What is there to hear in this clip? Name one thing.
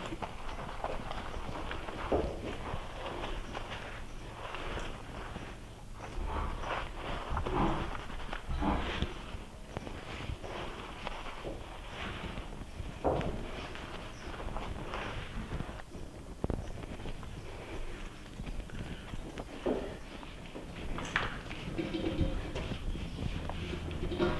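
Water drips and splashes onto a wet floor.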